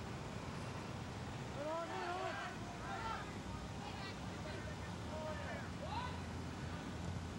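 A crowd of spectators calls out from the sidelines outdoors.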